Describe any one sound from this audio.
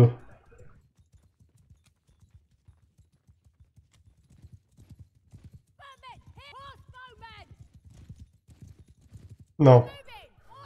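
A horse gallops over grass with thudding hoofbeats.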